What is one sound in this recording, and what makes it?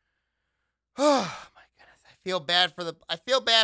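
A man speaks animatedly, close to a microphone.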